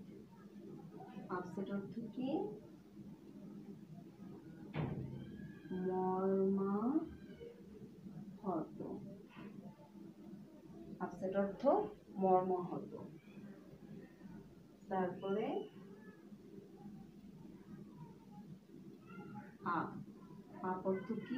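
A woman speaks calmly and clearly, as if teaching, close by.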